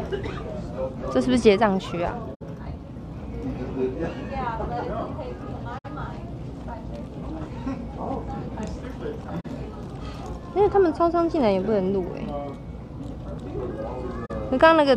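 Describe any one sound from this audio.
A young woman talks close to a microphone in a casual, lively voice.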